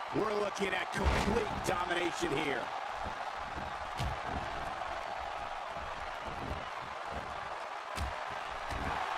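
Bodies thud onto a wrestling ring mat.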